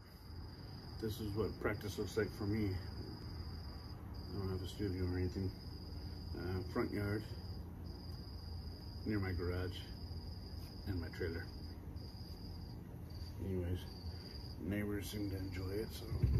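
A middle-aged man talks calmly and close by, in short bursts.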